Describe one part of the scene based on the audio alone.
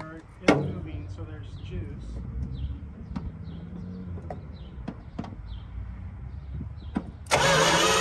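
Metal tools clink and knock against engine parts.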